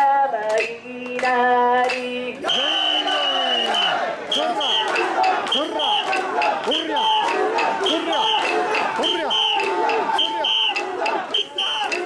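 A crowd of men and women chant loudly and rhythmically close by.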